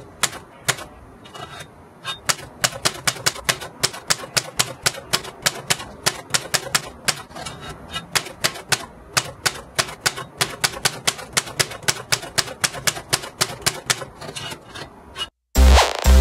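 Typewriter keys clack rapidly, striking the paper.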